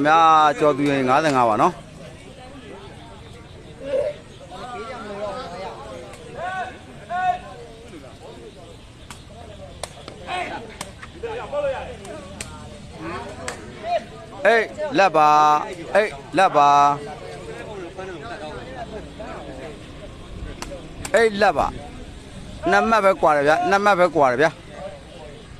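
Young men shout loudly nearby in bursts.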